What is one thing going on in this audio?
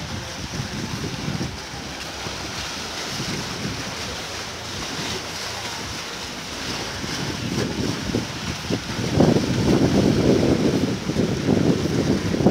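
Water laps gently against rocks, louder toward the end.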